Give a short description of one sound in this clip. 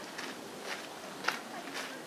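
A small water bird splashes softly as it dives into water.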